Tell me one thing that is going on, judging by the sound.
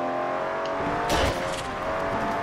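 A car crashes through a wooden obstacle with a loud bang.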